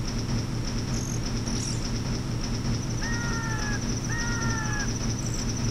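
A heavy wooden gate rumbles and grinds as it slowly rises.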